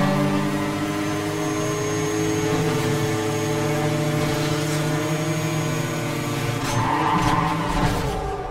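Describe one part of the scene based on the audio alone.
Other race cars whoosh past closely.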